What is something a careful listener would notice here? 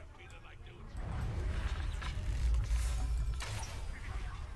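A crackling, booming magical blast bursts and fades.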